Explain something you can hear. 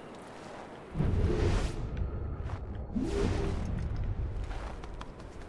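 A deep whoosh swells and fades.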